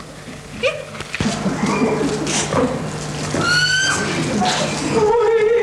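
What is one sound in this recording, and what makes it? A woman laughs heartily close by.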